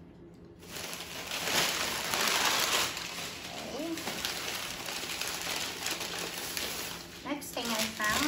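A plastic bag rustles and crackles loudly.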